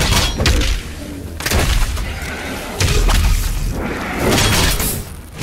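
A shotgun fires loud blasts.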